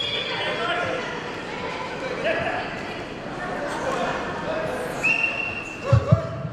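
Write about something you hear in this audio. A man speaks loudly in a large echoing hall.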